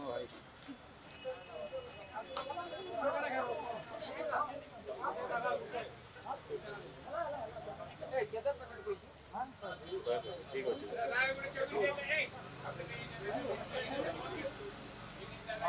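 Several men talk nearby.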